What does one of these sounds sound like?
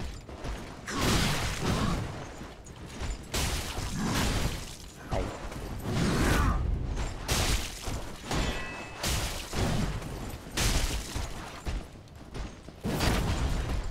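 Metal weapons clash and strike.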